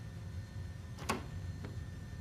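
Cabinet doors click open.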